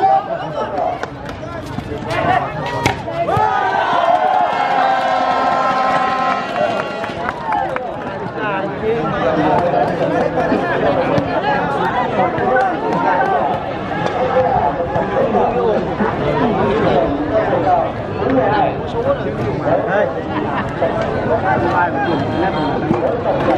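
A large crowd outdoors chatters and cheers loudly.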